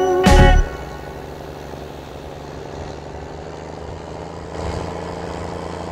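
A tractor engine hums steadily inside the cab.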